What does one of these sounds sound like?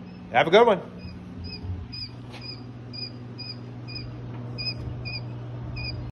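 Small chicks peep repeatedly in short high chirps.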